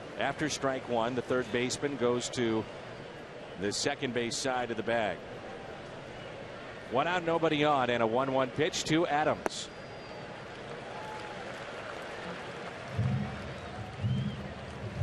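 A large crowd murmurs steadily in an open stadium.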